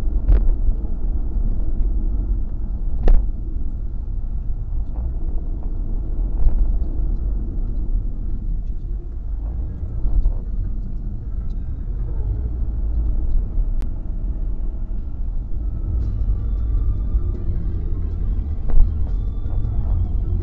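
Tyres roll on the highway surface.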